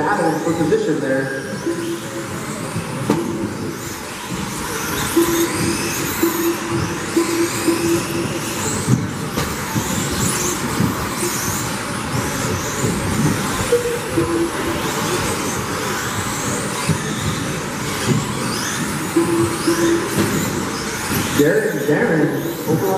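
Small electric model cars whine at high speed, rising and falling in pitch as they race past.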